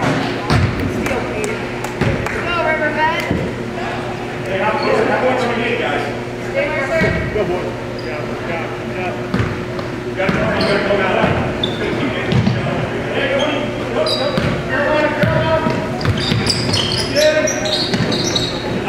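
Teenage boys shout and call out to each other in an echoing gym.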